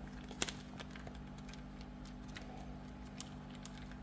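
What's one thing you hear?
A hand rummages through dry popcorn with soft rustling.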